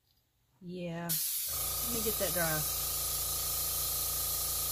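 An airbrush sprays with a steady hiss.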